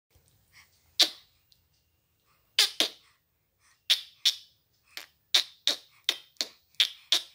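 A baby babbles softly close by.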